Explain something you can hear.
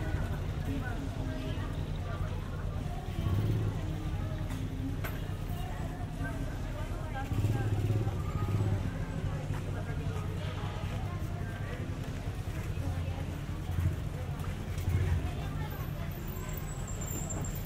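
Motorcycle engines rumble nearby.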